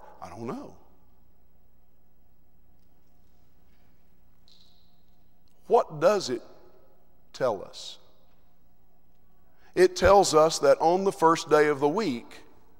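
A man preaches through a microphone in a large echoing hall, speaking in bursts with long pauses.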